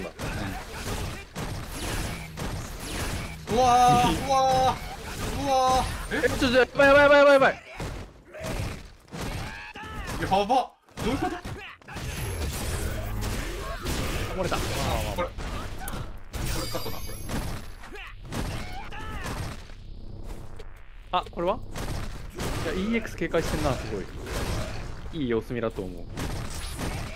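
Punches and kicks land with heavy, rapid thuds.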